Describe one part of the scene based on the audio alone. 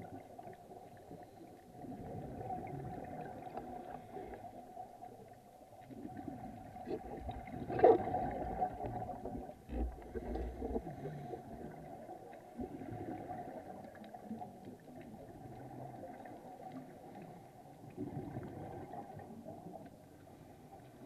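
Scuba breathing bubbles gurgle and rumble close by, underwater.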